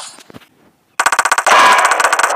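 A burst of game music plays.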